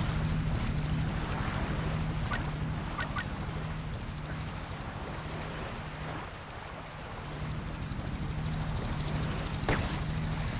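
Surf washes steadily onto a shore.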